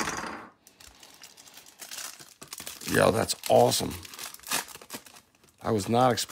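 Plastic wrapping crinkles and rustles as hands open it.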